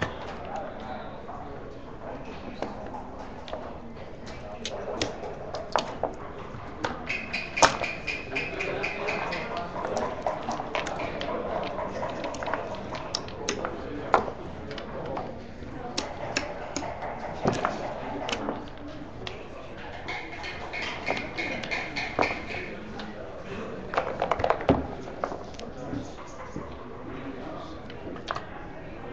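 Game pieces click and clack against a wooden board.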